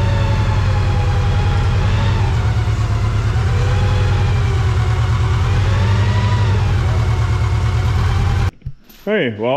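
A forklift engine idles with a steady low rumble.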